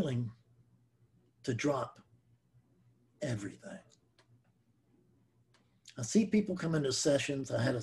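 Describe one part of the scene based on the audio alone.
An older man speaks calmly and closely into a microphone, with pauses.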